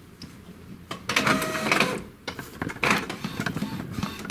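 A printer whirs as it starts to feed paper.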